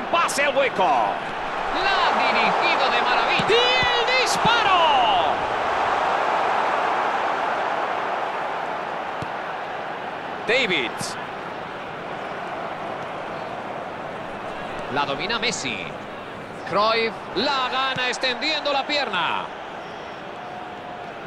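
A stadium crowd roars steadily, swelling and easing.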